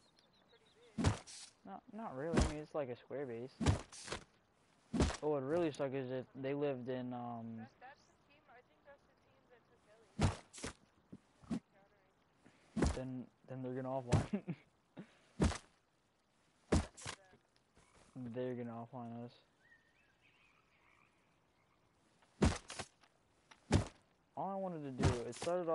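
A rock strikes a tree trunk with repeated hard knocks.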